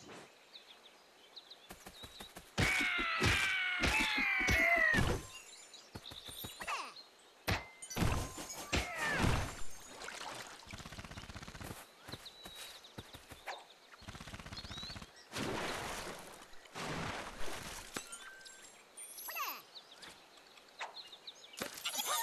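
Video game sound effects play as a cartoon character runs and jumps through a level.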